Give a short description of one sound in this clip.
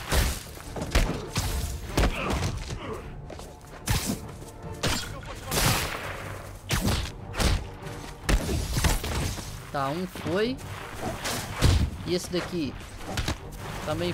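Punches land with heavy thuds during a fight.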